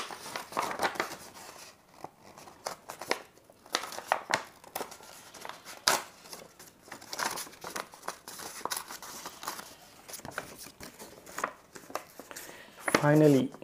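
Paper crinkles and rustles as an envelope is torn open.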